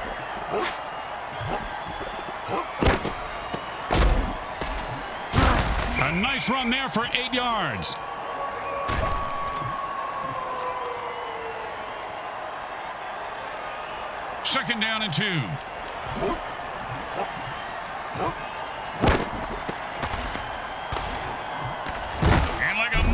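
Armoured players crash into each other with heavy thuds.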